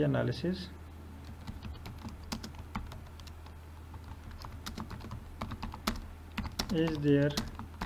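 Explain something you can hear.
Keys clatter on a computer keyboard in quick bursts.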